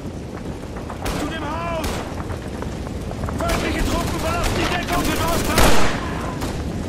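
Rifle shots crack one after another, with echoes.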